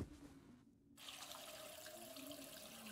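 Water runs from a tap into a glass.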